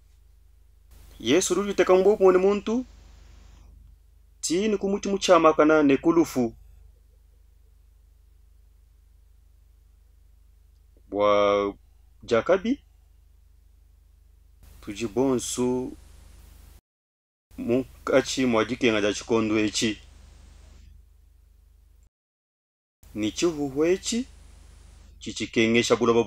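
A middle-aged man speaks with animation, close to a microphone, in short bursts with pauses.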